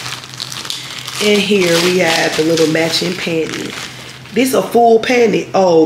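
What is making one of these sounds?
Plastic packaging rustles and crinkles.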